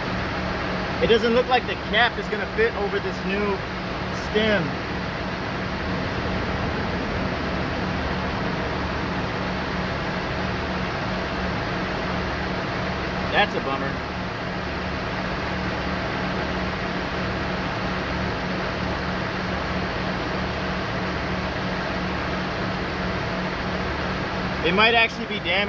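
A young man speaks briefly and casually, close by.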